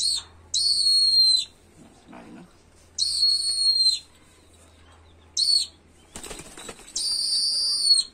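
A hawk flaps its wings.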